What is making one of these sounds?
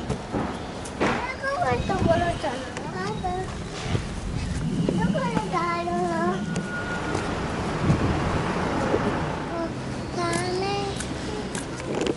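A young man talks casually close by.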